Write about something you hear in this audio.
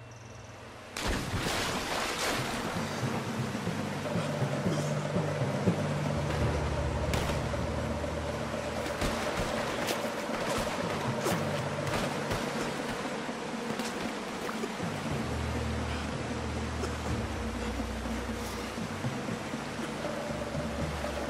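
A river rushes and churns loudly.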